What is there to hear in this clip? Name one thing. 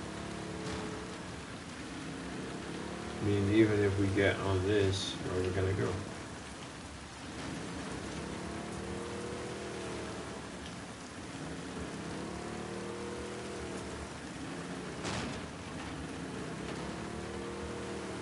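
A small boat motor hums steadily.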